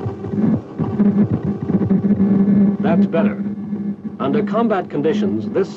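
A loudspeaker plays a loud, deep droning hum.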